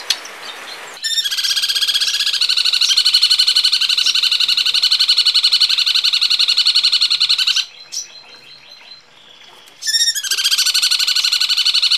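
A bird chatters in a fast, rattling trill.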